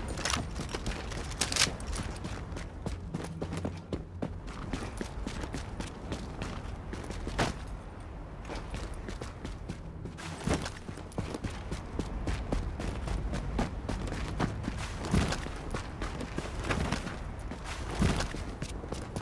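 Boots crunch on snow with quick footsteps.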